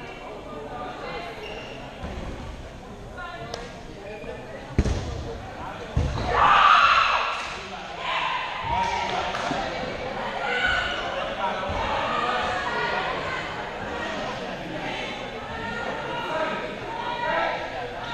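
Men and women talk at a distance in a large echoing hall.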